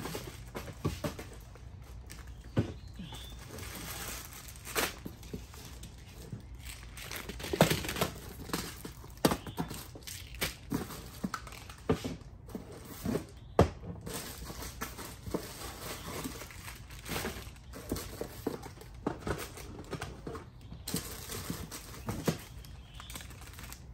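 Plastic candy bags crinkle and rustle as they are handled close by.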